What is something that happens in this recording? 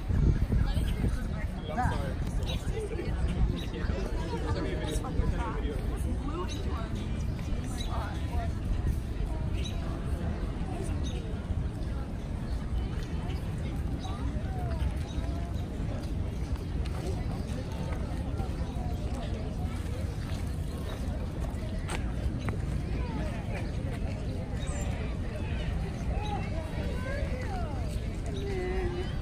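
Many people chatter at a distance outdoors.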